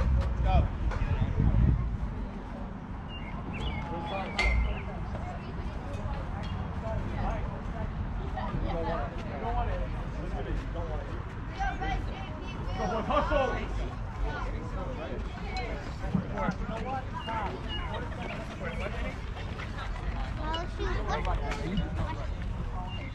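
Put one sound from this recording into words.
Adults and children shout and cheer across an outdoor ball field.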